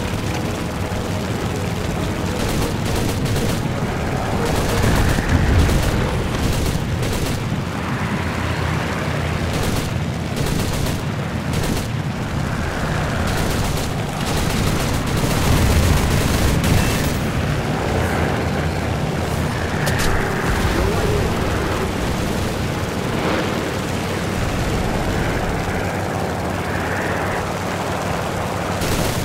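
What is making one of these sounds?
A propeller engine drones steadily.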